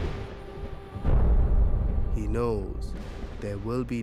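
Thunder rumbles loudly overhead.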